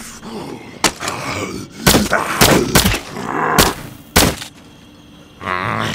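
A monster groans and snarls close by.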